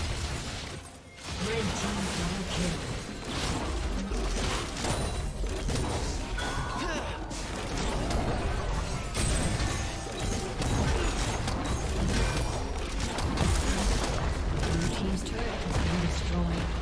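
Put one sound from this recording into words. Video game spells and attacks crackle and boom in a fast battle.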